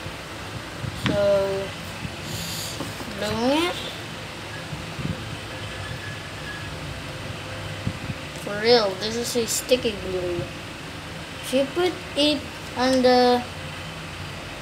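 A boy speaks close by in short, animated bursts.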